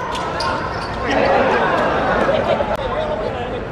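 Spectators chatter and cheer nearby.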